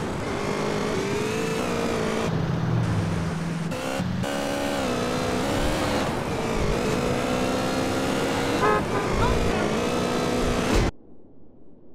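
A motorbike engine roars and revs at high speed.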